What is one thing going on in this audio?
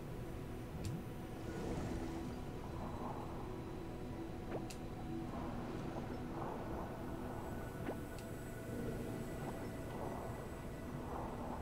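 A man talks calmly, close to a microphone.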